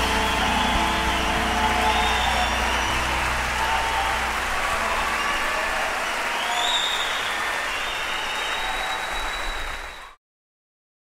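A large audience claps and cheers in a big echoing hall.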